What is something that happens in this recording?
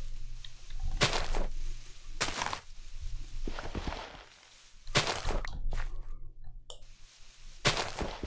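Dirt crunches in short gritty bursts as blocks are dug.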